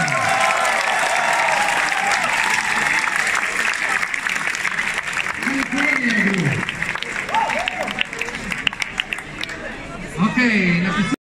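Many people clap their hands.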